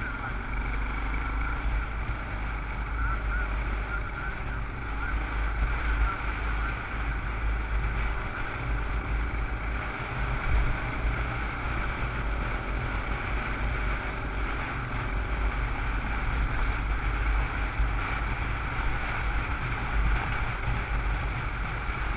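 Wind rushes loudly past a helmet.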